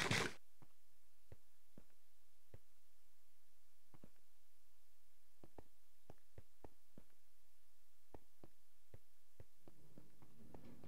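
Footsteps tap softly on stone.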